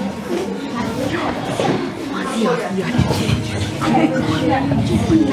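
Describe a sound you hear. Children talk and chatter nearby in a room.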